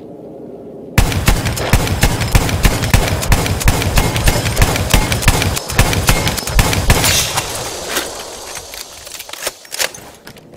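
A heavy machine gun fires rapid, loud bursts.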